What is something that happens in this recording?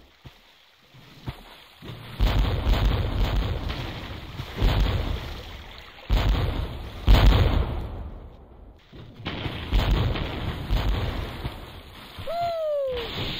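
Explosions burst loudly.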